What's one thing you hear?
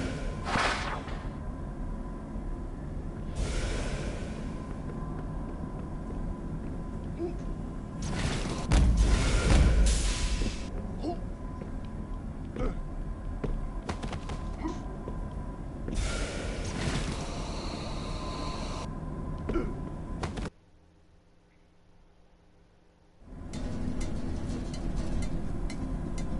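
Video game music plays.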